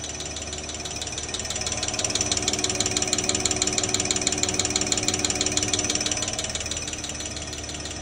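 A fuel injector on a test machine ticks rapidly and steadily.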